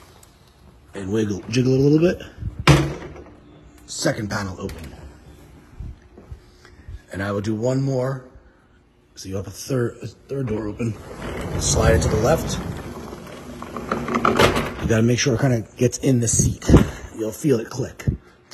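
A man talks close by, explaining calmly.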